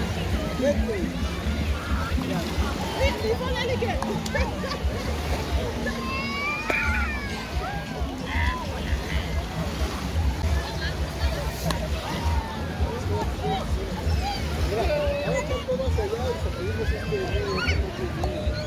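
Children shout and squeal playfully.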